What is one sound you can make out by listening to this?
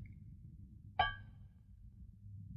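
A metal mug clinks sharply against a hard floor and rings briefly.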